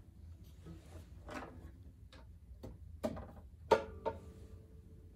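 Wooden knocks and thumps sound as a guitar is set down.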